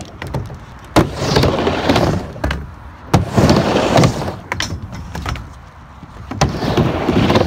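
A skateboard clacks against the ramp's coping.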